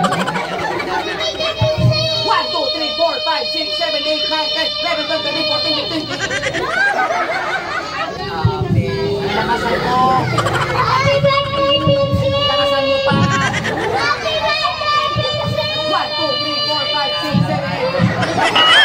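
Young children shout and chatter excitedly nearby.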